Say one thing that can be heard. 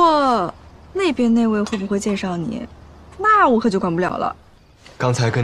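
Another young woman speaks calmly, close by.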